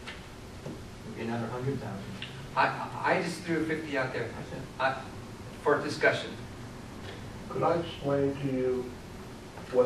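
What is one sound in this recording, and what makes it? A man speaks through a microphone in a large room with some echo.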